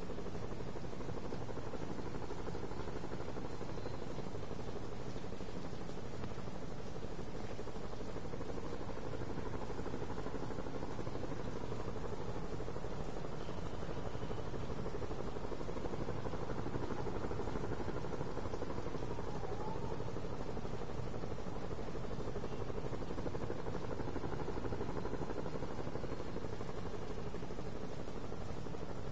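Wind and distant city traffic hum steadily outdoors.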